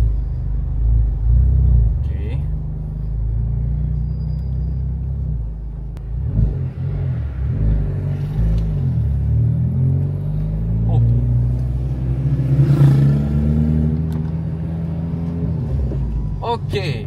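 A car engine hums and revs steadily inside the cabin.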